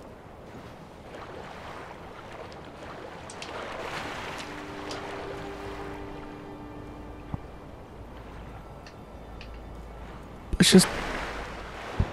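Water splashes as someone swims.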